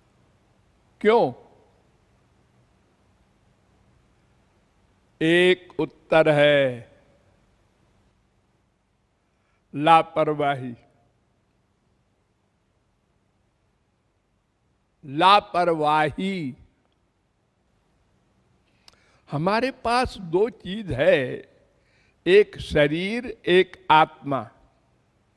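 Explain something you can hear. An elderly man speaks and sings slowly into a microphone, in short phrases with long pauses.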